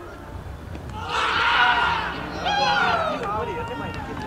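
Young men shout a loud appeal outdoors.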